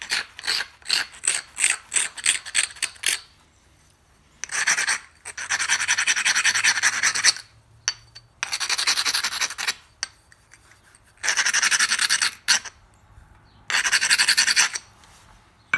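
A sharpening stone scrapes along a knife blade in quick strokes.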